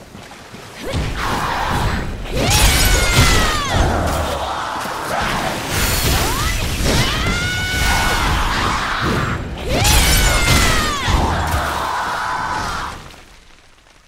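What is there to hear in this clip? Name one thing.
Weapons clash and strike loudly in a fight.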